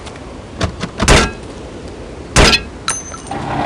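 A pistol fires with sharp, loud bangs.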